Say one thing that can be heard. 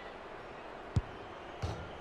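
A football is struck with a sharp thud.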